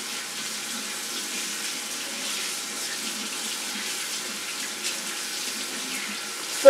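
Water runs steadily from a tap into a sink.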